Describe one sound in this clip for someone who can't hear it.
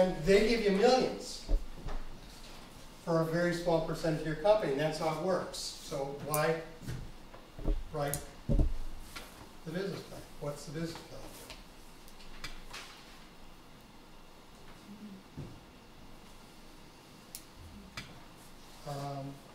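A middle-aged man speaks calmly to a room.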